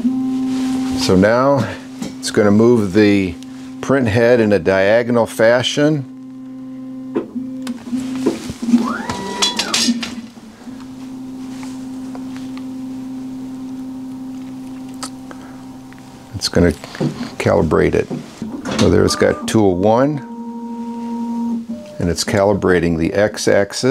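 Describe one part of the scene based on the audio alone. A 3D printer's motors whine in quick rising and falling bursts.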